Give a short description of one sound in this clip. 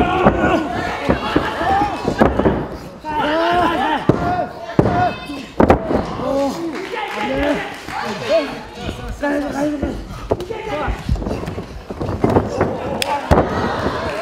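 A wrestler's body thuds heavily onto a canvas mat.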